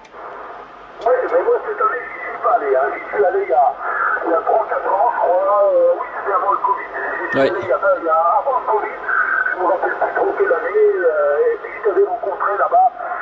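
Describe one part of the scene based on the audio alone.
A man's voice talks over a radio loudspeaker, thin and slightly crackly.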